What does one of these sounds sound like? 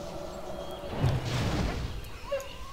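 A magic spell whooshes and crackles.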